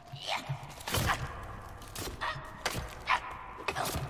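An axe thuds into flesh.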